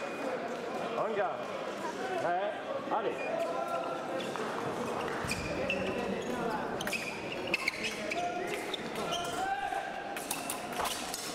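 Sports shoes squeak sharply on a hard floor as fencers move.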